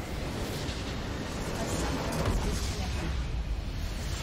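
A large crystal shatters and explodes with a rumbling boom.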